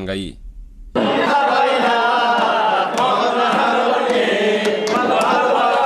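A group of men sing loudly through microphones.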